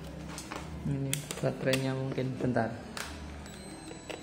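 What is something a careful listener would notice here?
A plastic battery cover clicks open.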